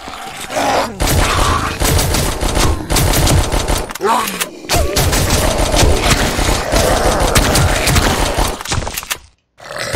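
Rapid gunfire and explosions crackle and boom.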